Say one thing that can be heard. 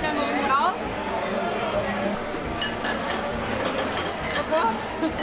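Heavy glass beer mugs clink and knock together.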